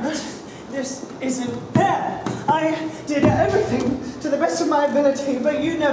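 A woman speaks loudly and theatrically.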